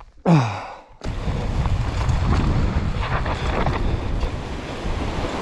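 Bicycle tyres roll and crunch over a loose, rocky dirt trail.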